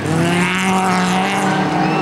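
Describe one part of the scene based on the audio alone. A car crashes and rolls over on dirt.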